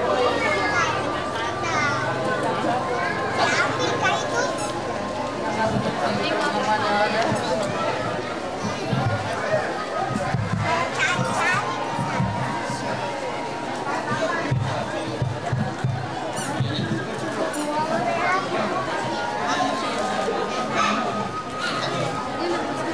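A crowd of men and women chatters loudly all around.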